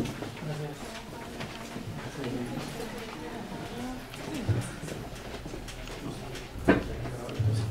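Footsteps pass close by.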